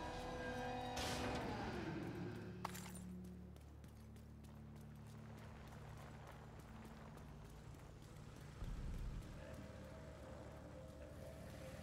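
Boots thud steadily on wet pavement as someone runs.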